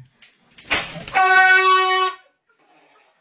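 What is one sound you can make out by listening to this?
A toy horn honks loudly.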